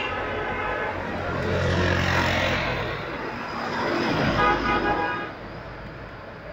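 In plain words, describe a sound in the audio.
A small motor vehicle drives past close by, its engine rising and fading.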